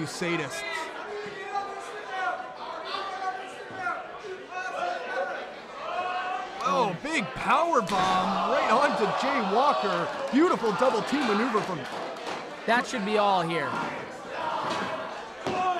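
A crowd cheers and shouts in a large room.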